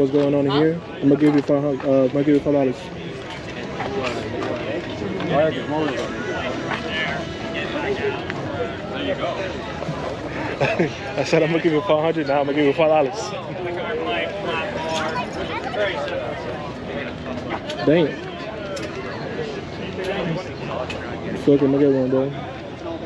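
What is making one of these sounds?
A crowd chatters in the background outdoors.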